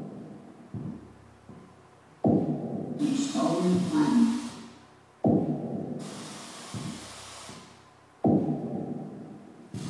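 Deep electronic tones throb in loud, repeating pulses from loudspeakers in an echoing room.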